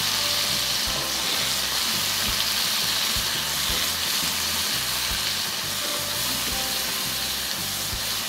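Water sloshes as a hand stirs beans in a bowl.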